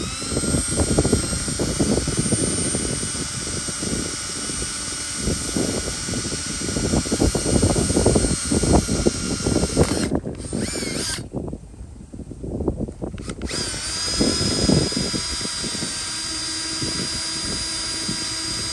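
A cordless drill whirs steadily, drilling into metal.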